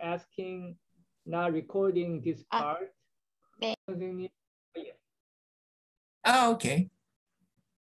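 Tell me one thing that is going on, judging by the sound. A man speaks calmly through an online call.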